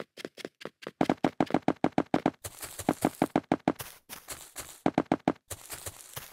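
Blocks are placed one after another with quick knocking clicks.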